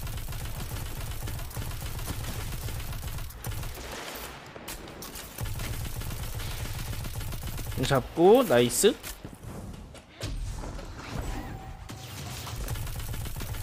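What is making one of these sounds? Guns fire in a video game battle.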